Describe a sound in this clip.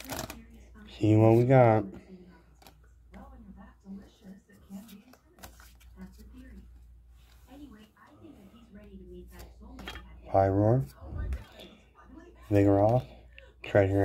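Cards slide and tap against each other.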